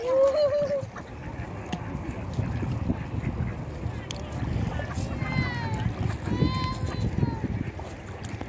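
Ducks call out over the water.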